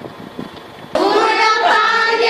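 A group of children sing together loudly.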